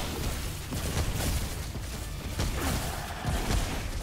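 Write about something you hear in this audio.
A crackling energy blast bursts and hisses.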